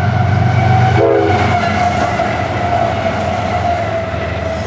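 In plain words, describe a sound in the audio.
Freight cars clatter and rattle along the rails.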